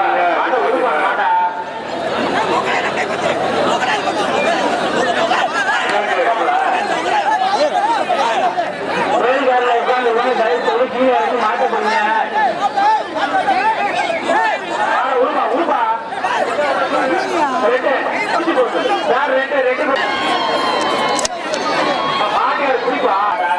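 Several men shout and talk excitedly close by.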